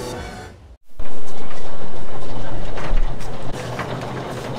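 A metal roller door rattles loudly as it rolls up.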